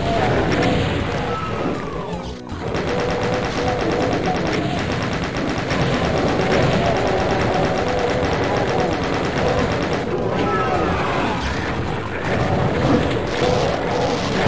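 Monsters growl and roar.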